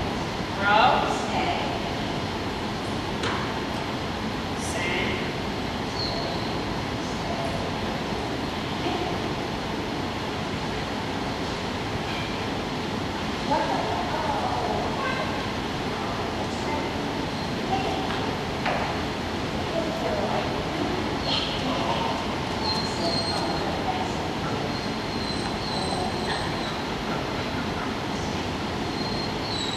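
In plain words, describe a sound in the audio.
A woman talks encouragingly to a dog.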